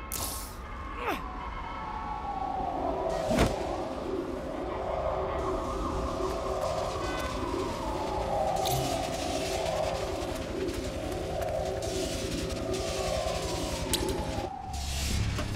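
Electricity buzzes and crackles steadily.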